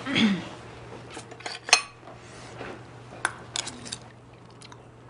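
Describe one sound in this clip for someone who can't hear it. Spoons clink against dishes.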